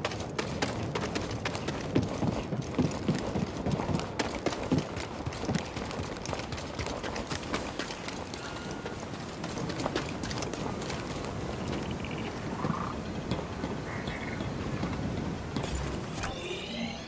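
Footsteps run quickly over stone and gravel.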